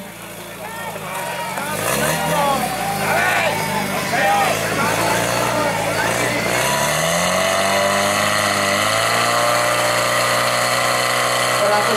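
A portable fire pump engine revs up under load.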